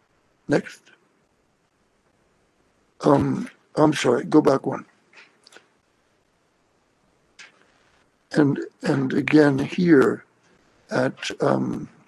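An elderly man speaks calmly through an online call, in short phrases with pauses.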